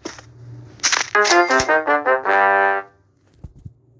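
A short game tune plays a descending run of notes.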